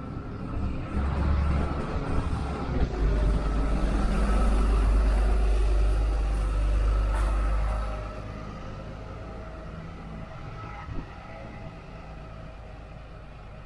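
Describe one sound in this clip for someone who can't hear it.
Distant city traffic hums outdoors.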